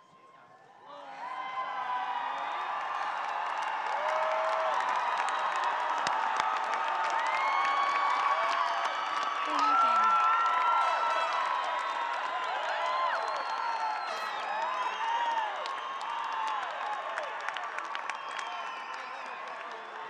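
A large crowd cheers and chatters loudly in a big echoing hall.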